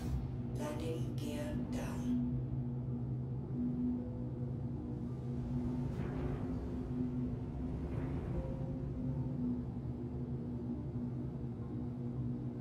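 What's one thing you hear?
A spacecraft engine hums and drones steadily.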